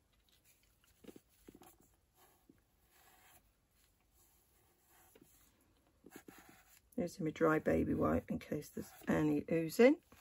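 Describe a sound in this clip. Paper rustles and crinkles as it is handled.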